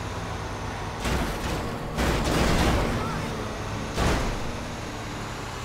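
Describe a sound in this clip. Other cars whoosh past on the road.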